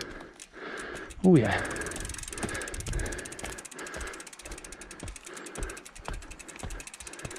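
Bike tyres roll and crunch over a dirt trail.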